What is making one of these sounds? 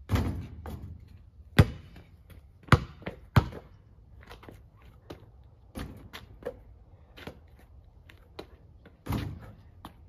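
A basketball clangs off a hoop's rim.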